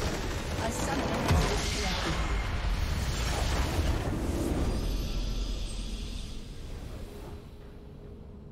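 A huge explosion booms and rumbles, then fades away.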